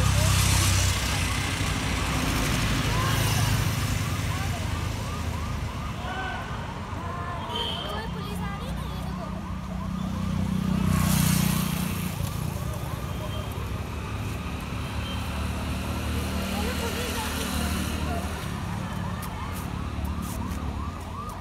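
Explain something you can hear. Traffic hums steadily along a road outdoors.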